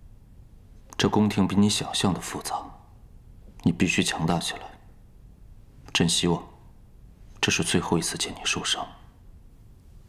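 A young man speaks calmly and earnestly, close by.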